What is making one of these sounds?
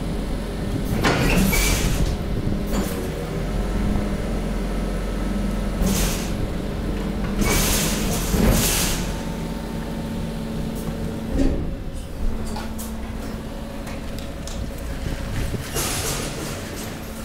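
Plastic bottles and rubbish rustle and clatter as a conveyor moves them.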